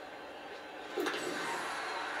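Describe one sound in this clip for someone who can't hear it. A bat cracks against a ball through a television speaker.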